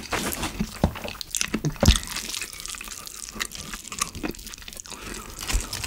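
Dried seaweed crinkles in a hand.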